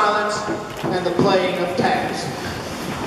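A large band plays in a big echoing hall.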